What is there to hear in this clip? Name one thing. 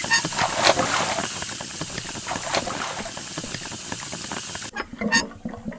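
Water splashes and sloshes steadily.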